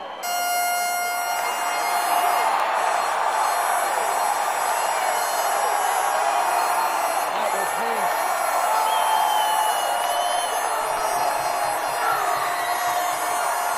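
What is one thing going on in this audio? A crowd cheers and screams loudly in a large echoing hall.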